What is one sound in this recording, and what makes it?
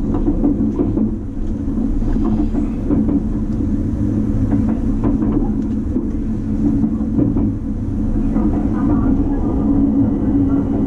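Wheels clack over rail joints.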